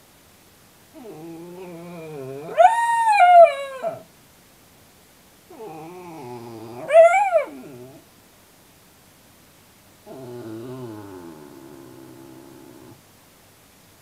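A dog in a crate whines and howls in long, rising cries.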